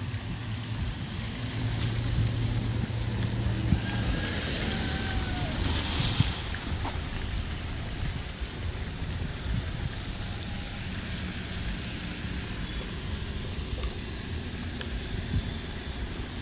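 Car engines idle nearby.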